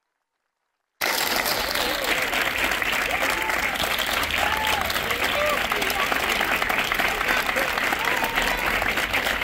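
A large crowd applauds loudly outdoors.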